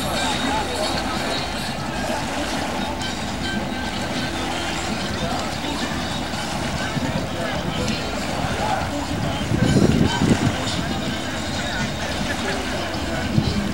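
Wind blows steadily outdoors, gusting harder for a moment.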